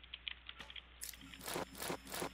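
Footsteps thud on a hard roof.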